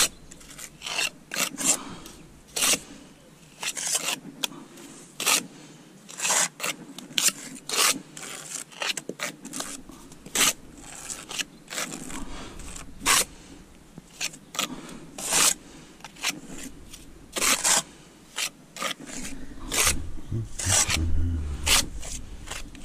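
A metal pointing tool scrapes and taps mortar into gaps between bricks.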